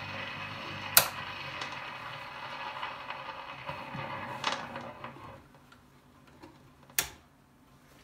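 A switch on a record player clicks.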